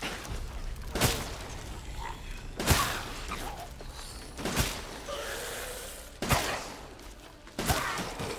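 A gun fires loud single shots, each followed by a short echo.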